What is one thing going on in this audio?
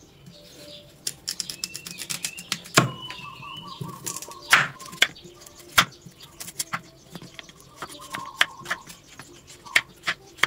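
A knife chops through a carrot onto a wooden board.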